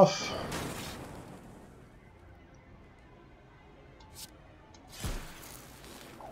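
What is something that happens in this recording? A sharp magical strike hits with a crackling impact.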